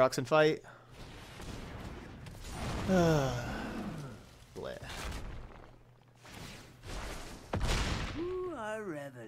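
Game sound effects whoosh and rumble as cards are played.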